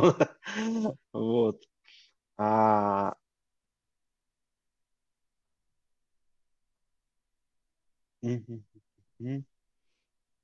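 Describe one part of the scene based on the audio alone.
A man talks calmly over an online call.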